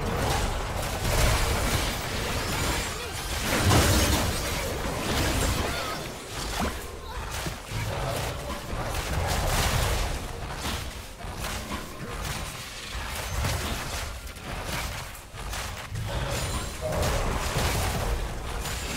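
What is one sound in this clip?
Spell blasts and clashing attacks burst and crackle in a fast game battle.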